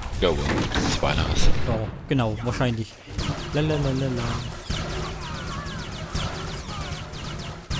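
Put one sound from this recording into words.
Blaster shots crack in quick bursts.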